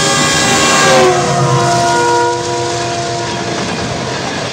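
A motorcycle engine hums alongside in traffic.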